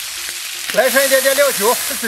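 Liquid pours into a hot pan and hisses.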